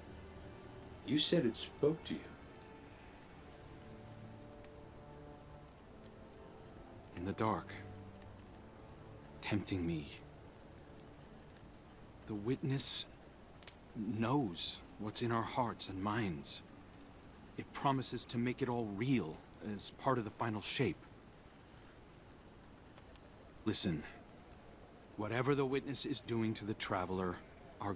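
A man talks calmly into a microphone, in short bursts.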